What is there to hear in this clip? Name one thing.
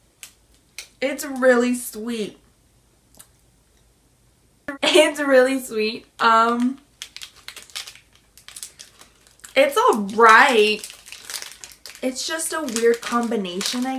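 A young woman talks expressively close to a microphone.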